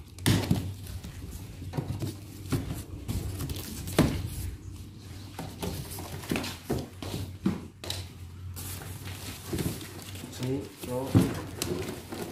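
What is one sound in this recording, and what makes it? Cardboard flaps rustle and scrape as a box is opened.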